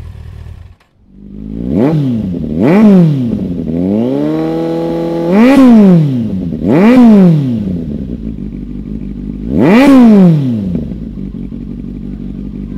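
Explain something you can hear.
A louder motorcycle engine idles deeply and revs sharply in quick bursts.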